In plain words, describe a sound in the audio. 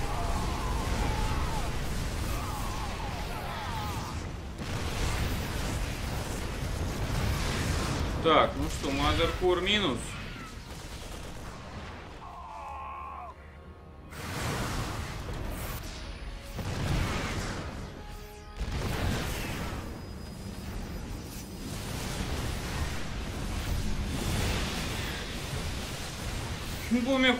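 A man comments with animation, close to a microphone.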